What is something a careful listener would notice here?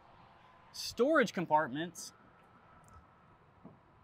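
A plastic latch clicks and a small lid opens.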